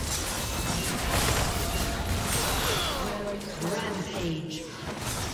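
Magic blasts and weapon strikes crash and whoosh in a hectic game battle.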